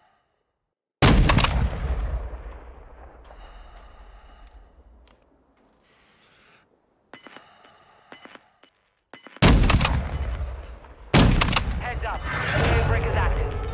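A rifle fires loud, sharp shots that echo and roll away.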